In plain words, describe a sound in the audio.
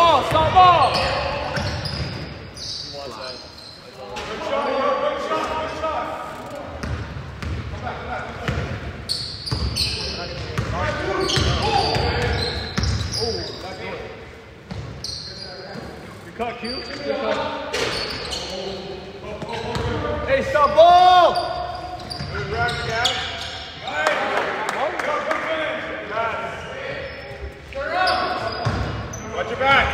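Men shout to each other across an echoing gym.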